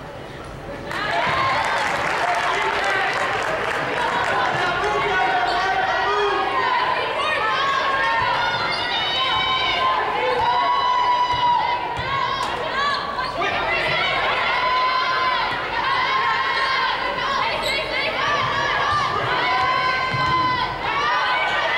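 Basketball sneakers squeak on a hardwood court.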